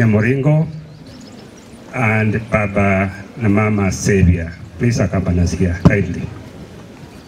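A man speaks with animation into a microphone over a loudspeaker, outdoors.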